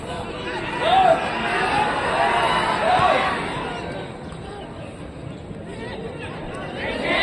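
A large crowd of spectators shouts and cheers outdoors.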